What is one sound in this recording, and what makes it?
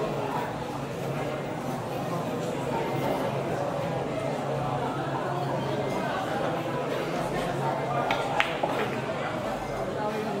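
Men chatter in the background of a busy, noisy room.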